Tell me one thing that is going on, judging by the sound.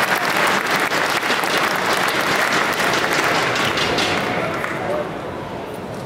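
A large crowd applauds and cheers loudly in a big echoing hall.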